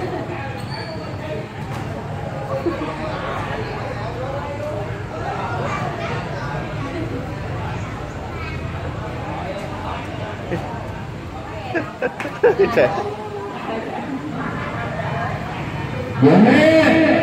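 Women chat and laugh nearby.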